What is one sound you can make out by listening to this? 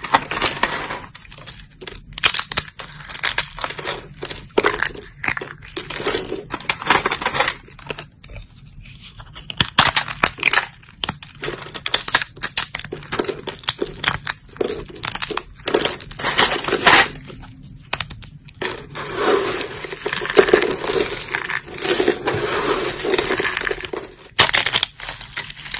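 Fingers snap and crunch thin, dry soap plates.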